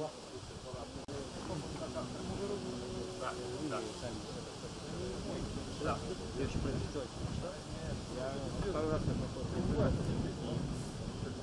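A man plays an acoustic guitar.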